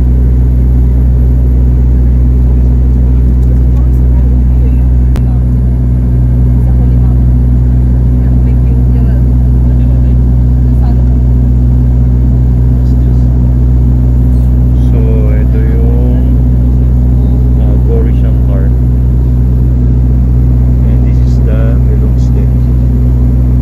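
A propeller plane's engines drone loudly and steadily.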